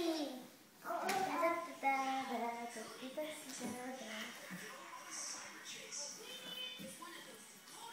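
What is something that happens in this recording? A young child shouts and squeals excitedly close by.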